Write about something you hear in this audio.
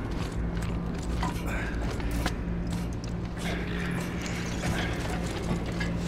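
Metal rungs clang as someone climbs a ladder.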